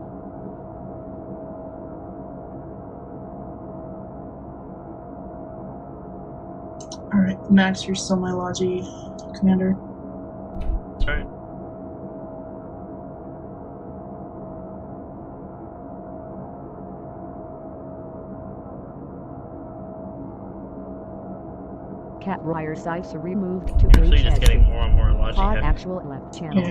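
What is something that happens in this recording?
Laser weapons hum steadily.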